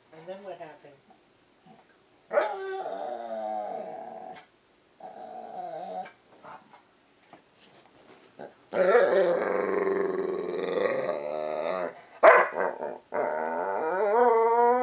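A dog howls and whines close by in long, wavering bursts.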